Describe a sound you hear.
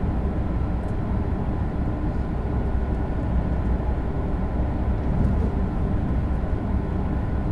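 A high-speed electric train rumbles along the track at speed, heard from the cab.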